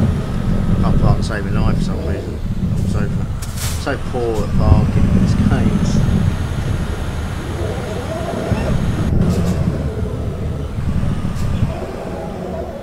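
A truck engine rumbles low and steadily.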